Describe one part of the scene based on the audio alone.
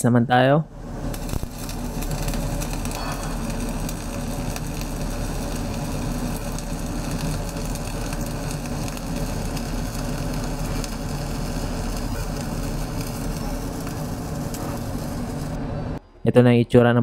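An electric welding arc crackles and buzzes steadily.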